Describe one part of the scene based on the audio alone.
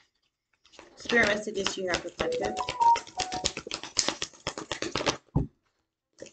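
Playing cards riffle and snap as they are shuffled quickly.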